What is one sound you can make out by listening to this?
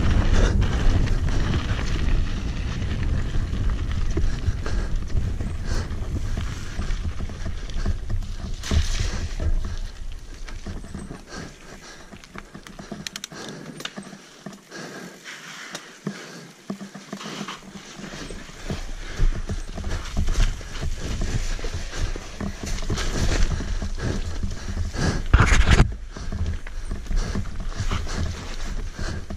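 A bike's chain and frame clatter over bumps.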